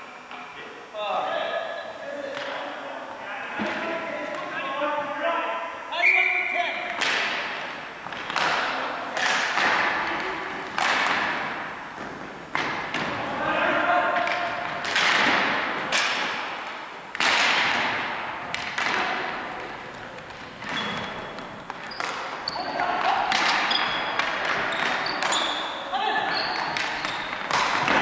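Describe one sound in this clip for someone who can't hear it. Men shout and call out to one another across a large echoing hall.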